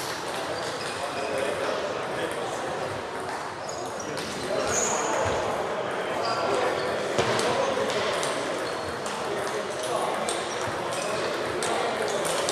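A ping-pong ball clicks back and forth between paddles and table, echoing in a large hall.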